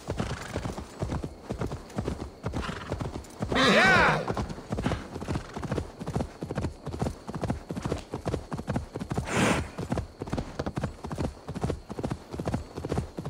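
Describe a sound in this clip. A horse gallops, hooves pounding steadily on soft ground.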